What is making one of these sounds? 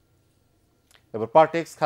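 A man reads out calmly through a microphone.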